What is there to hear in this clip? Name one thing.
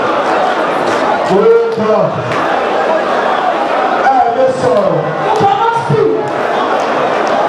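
A man sings and shouts loudly through a microphone.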